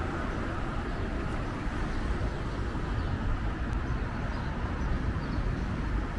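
A car drives slowly past.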